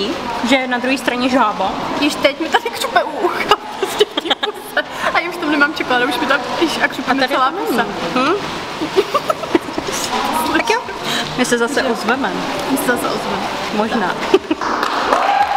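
A second young woman talks and laughs close by.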